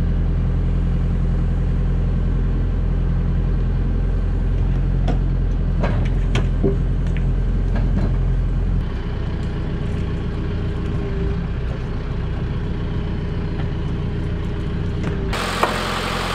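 A diesel tractor engine runs, driving a hydraulic crane.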